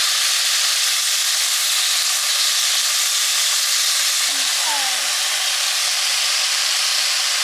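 Meat sizzles steadily in a hot pan.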